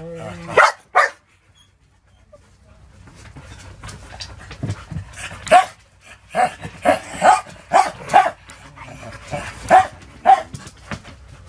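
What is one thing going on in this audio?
Dogs bark and yelp nearby.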